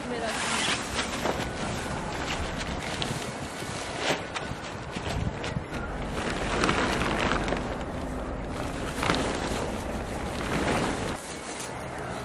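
A plastic tarp rustles and crinkles as it is spread out on the ground.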